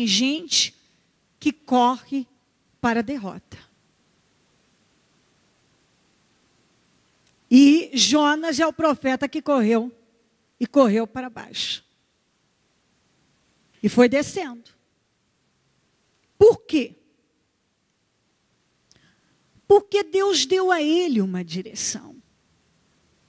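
A woman speaks with animation into a microphone, pausing between phrases.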